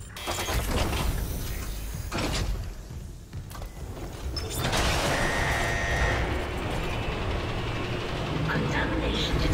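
Heavy metal boots clank on a metal floor.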